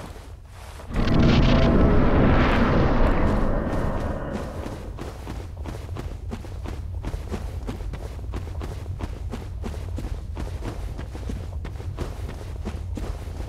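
A low rumble drones steadily.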